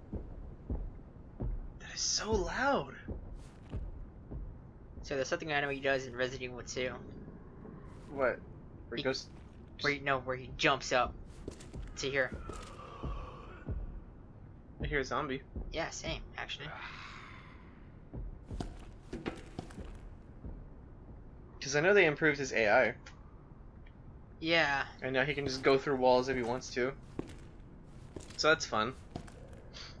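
Slow footsteps fall on a hard floor.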